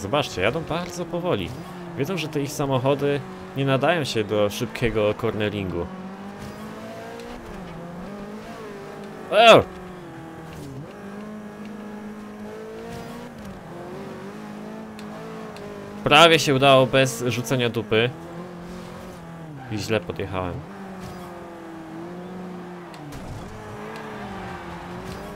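A racing car engine drones steadily, rising and falling in pitch as it shifts gears.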